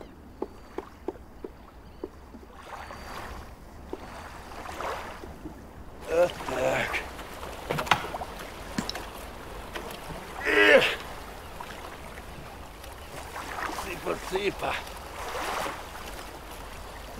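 A wooden oar knocks against a rowing boat.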